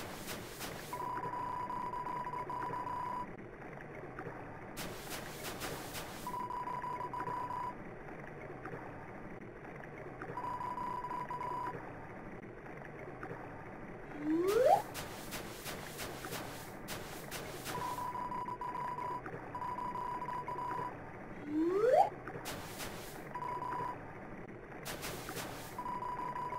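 Quick electronic blips chatter in short bursts.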